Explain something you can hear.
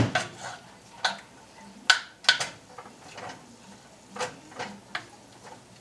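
Wooden spoons scrape and knock against a pan.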